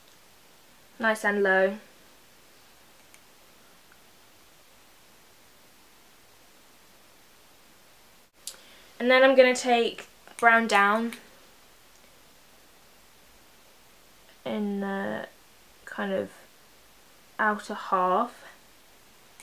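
A young woman speaks calmly and close by, in short phrases with pauses.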